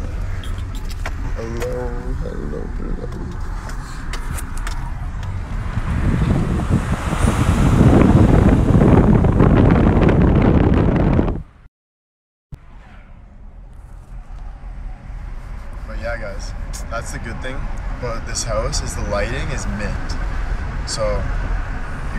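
A young man talks casually and close up.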